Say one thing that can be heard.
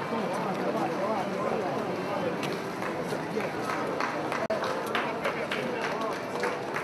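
A crowd of men and women chatters and murmurs nearby outdoors.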